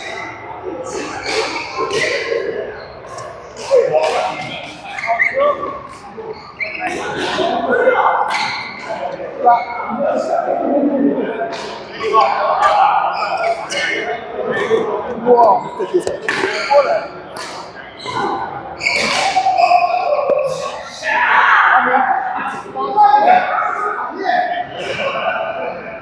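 Badminton rackets strike a shuttlecock in an echoing indoor hall.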